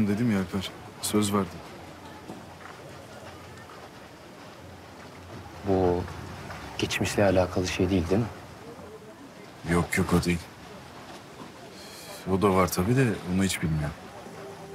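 A young man speaks quietly and seriously nearby.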